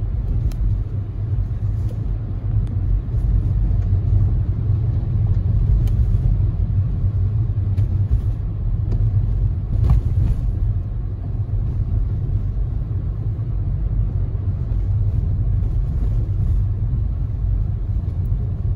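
A car engine hums low and steady inside the car.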